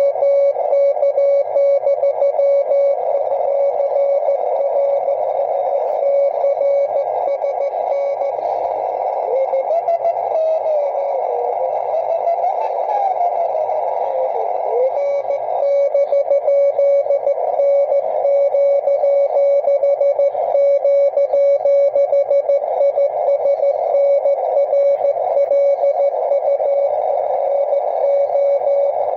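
Morse code beeps rapidly from a radio receiver.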